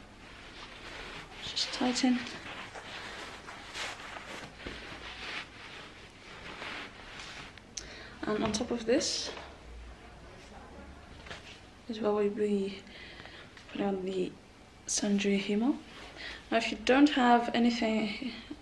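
Fabric rustles and swishes as a sash is tied.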